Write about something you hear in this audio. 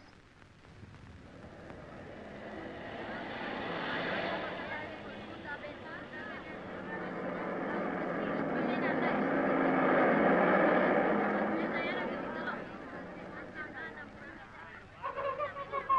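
A car engine rumbles as a car drives slowly past.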